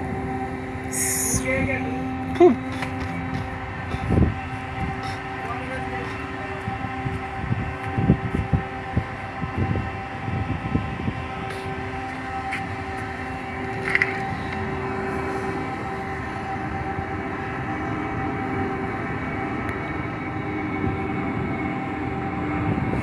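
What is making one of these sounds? Water churns and splashes below as an anchor chain runs out.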